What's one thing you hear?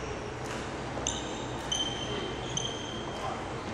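Sports shoes squeak on a wooden floor.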